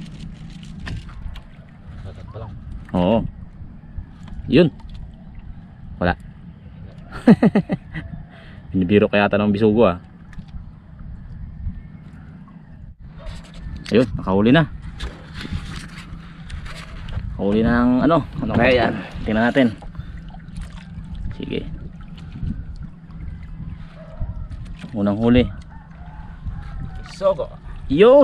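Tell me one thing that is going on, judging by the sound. Water laps gently against a wooden boat.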